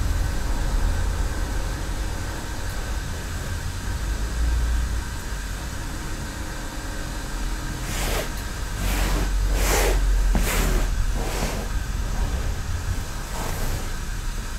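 Fabric rustles softly as cloth is folded.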